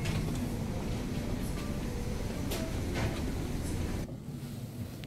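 A crowd murmurs indistinctly in a large room.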